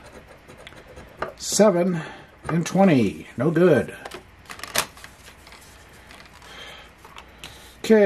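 A paper card rustles as it is moved.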